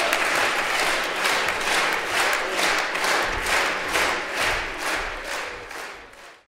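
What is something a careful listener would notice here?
An audience claps in rhythm.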